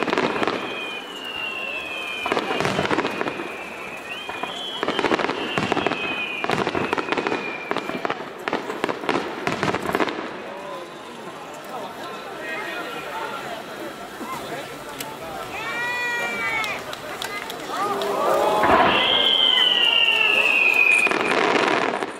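Fireworks shells burst in rapid succession with sharp booms outdoors.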